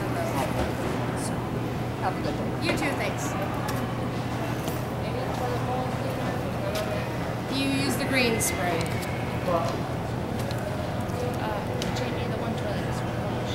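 Plastic bags rustle.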